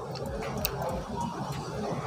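A welding torch crackles and hisses.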